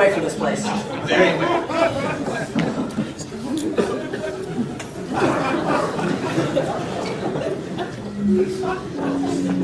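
A man speaks with animation in a large echoing room.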